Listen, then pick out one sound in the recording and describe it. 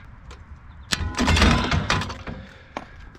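Bolt cutters snap through a rusty chain.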